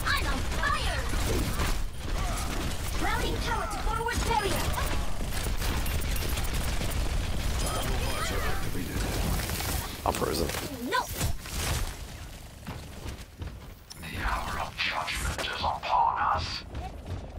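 Electronic game effects whoosh and chime.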